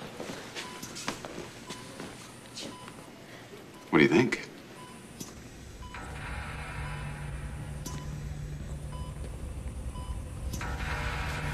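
A medical monitor beeps at a steady pace.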